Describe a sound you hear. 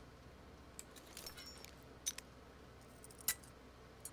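A lock clicks softly as it is picked.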